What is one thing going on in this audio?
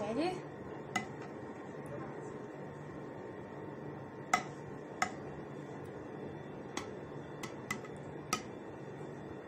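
A ladle clinks against a glass dish.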